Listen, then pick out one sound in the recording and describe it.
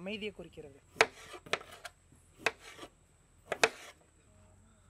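A knife chops onion against a metal surface with sharp knocks.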